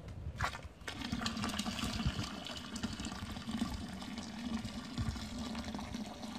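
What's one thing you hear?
Liquid pours from a bucket and splashes into a metal tub.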